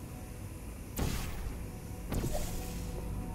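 A portal gun fires with a sharp zap.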